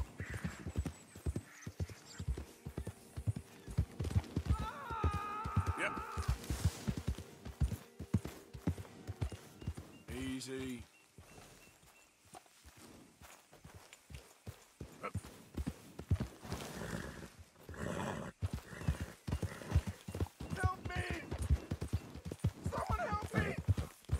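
A horse gallops, hooves thudding quickly on grass.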